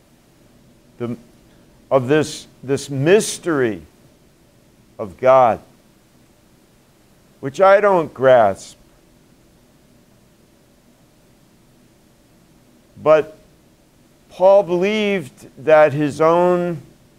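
An elderly man speaks calmly with long pauses, in a room with a slight echo.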